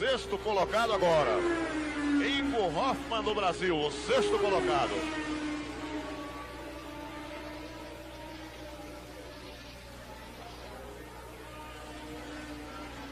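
A racing car engine roars at high revs as the car speeds by.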